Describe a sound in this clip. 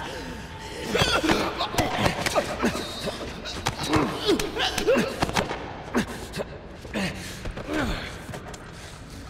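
Bodies scuffle and thud in a struggle.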